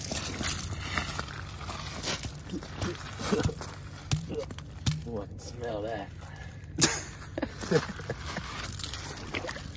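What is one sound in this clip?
Boots crunch on gravel.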